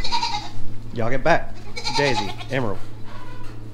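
A goat bleats.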